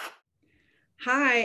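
A woman speaks over an online call.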